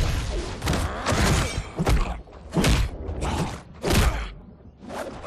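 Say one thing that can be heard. Heavy punches and blows thud hard and fast.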